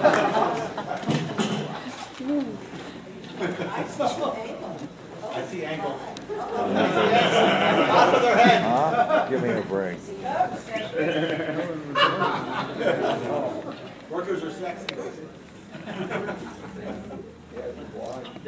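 Men and women talk over one another nearby in a large room.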